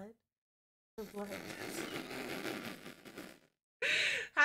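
A second young woman laughs nearby.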